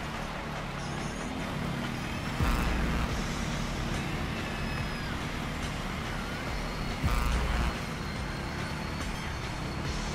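A dirt bike engine revs and roars steadily.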